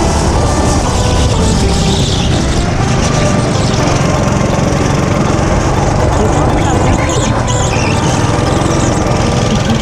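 A go-kart's small single-cylinder engine drones at full throttle close by.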